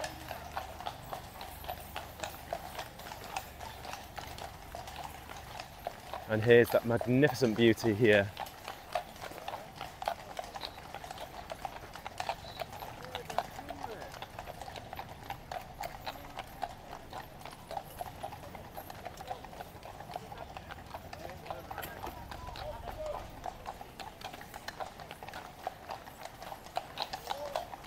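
Horses' hooves clop steadily on a paved road.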